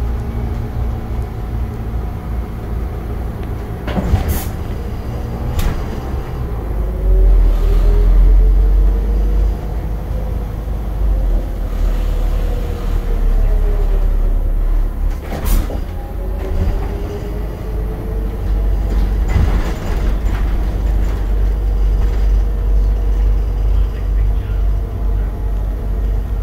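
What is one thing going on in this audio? A city bus drives along, heard from inside.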